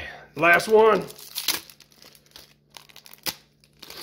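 A plastic wrapper crinkles and tears open.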